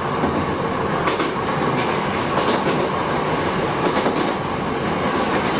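A passing train rushes by in the opposite direction.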